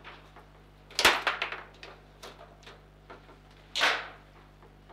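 A ball bangs hard against a table's wall.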